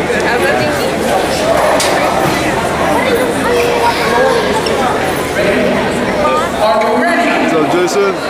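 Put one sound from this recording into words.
A man speaks loudly into a microphone over a public address system in a large echoing hall.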